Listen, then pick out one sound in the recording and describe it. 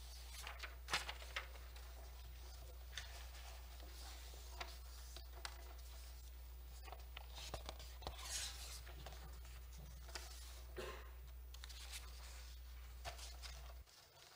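Papers rustle and shuffle close to a microphone.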